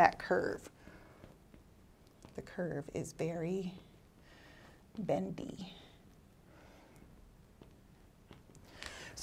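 A woman speaks calmly into a close microphone, explaining.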